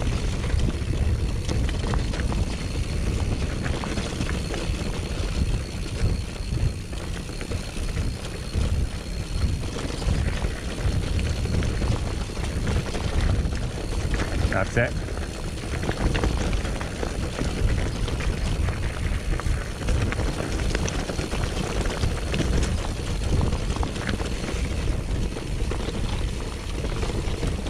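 Bicycle tyres crunch and rattle over loose gravel throughout.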